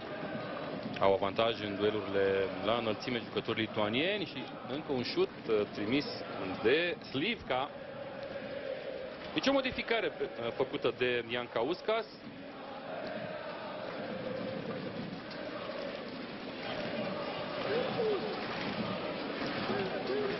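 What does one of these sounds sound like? A stadium crowd murmurs steadily in a large open space.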